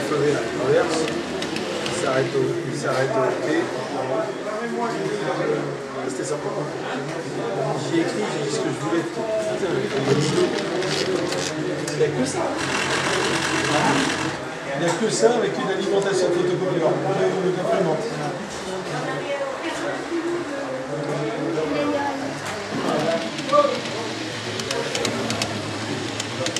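A model tram hums along its track.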